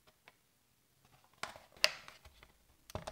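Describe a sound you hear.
Plastic panels knock and scrape as a toy playset is turned and closed.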